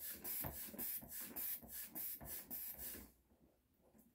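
A cable rubs and scrapes against a plastic box in quick, rhythmic strokes.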